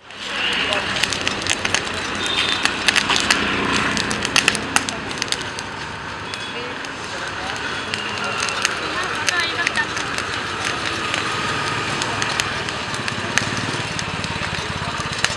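A hand-cranked blower whirs steadily.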